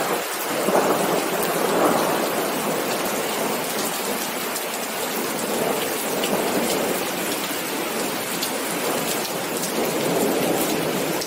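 Steady rain falls and patters on wet pavement.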